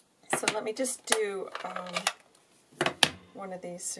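A plastic ink pad lid clicks open.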